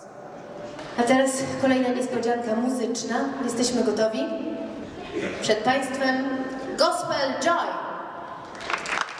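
A woman speaks with animation through a microphone in a large echoing hall.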